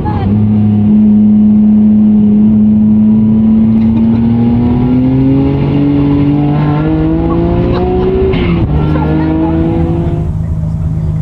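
A car engine roars loudly and rises in pitch as it speeds up.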